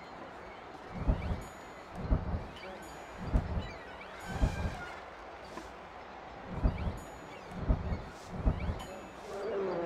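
Soft, low thuds come one after another as trees are placed.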